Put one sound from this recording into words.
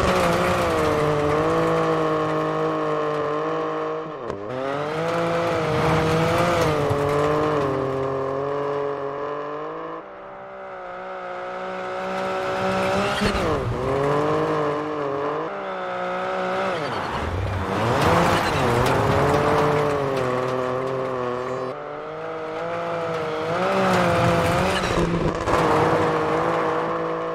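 A rally car engine roars at full throttle and revs up and down through the gears.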